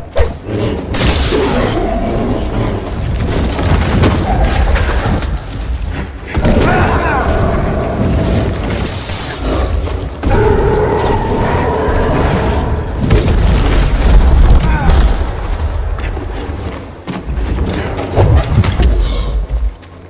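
Heavy thuds and crashes shake the ground.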